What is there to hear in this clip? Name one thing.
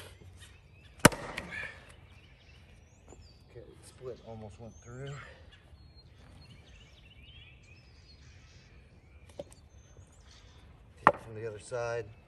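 An axe splits a log with a sharp crack.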